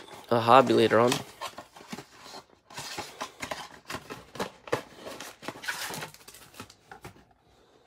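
Cardboard tears as a box is ripped open.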